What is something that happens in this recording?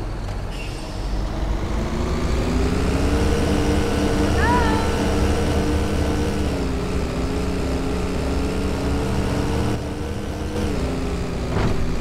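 A bus engine revs up and rises in pitch as the bus pulls away.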